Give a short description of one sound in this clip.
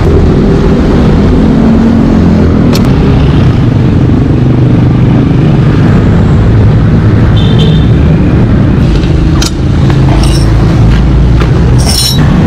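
A metal tire lever scrapes and clinks against a wheel rim.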